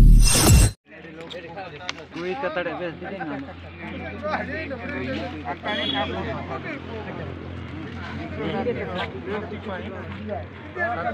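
Several men talk calmly nearby, outdoors.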